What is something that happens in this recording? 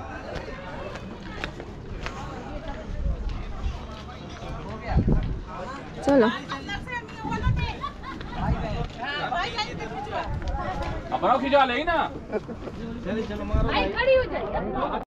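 Footsteps scuff on a concrete path.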